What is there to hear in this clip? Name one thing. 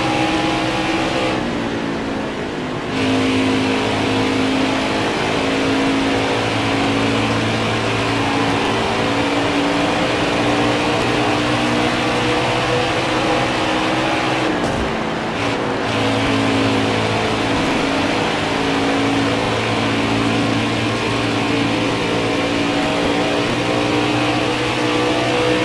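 A race truck engine roars loudly at high revs, holding a steady pitch.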